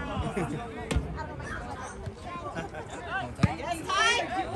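A soccer ball is kicked with a thud.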